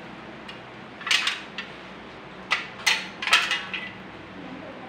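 A thin aluminium can crinkles as hands bend it.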